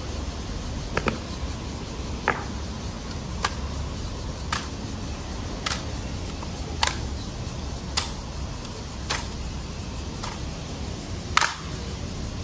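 Rifle butts strike stone paving with sharp knocks.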